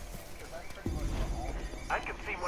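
A rifle fires a burst.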